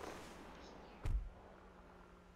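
A car door slams shut with a heavy thud.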